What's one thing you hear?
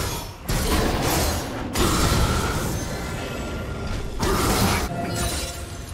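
Magic blasts whoosh and crash in loud bursts.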